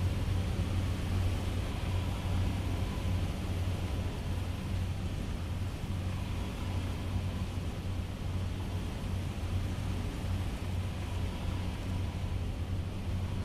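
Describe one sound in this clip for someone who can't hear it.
Jets of fire roar and hiss.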